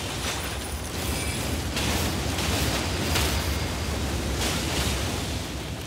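Flames burst and roar loudly.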